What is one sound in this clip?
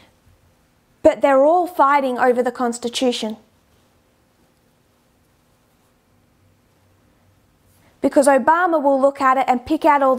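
A woman speaks calmly and clearly into a close microphone, with pauses.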